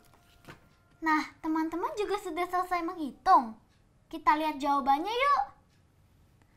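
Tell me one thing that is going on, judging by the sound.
A young girl speaks brightly and close by.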